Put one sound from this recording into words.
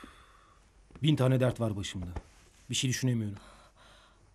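A young man speaks close by, in a low, tense voice.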